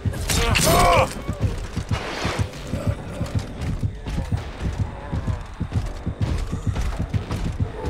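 Heavy footsteps thud steadily through dry grass.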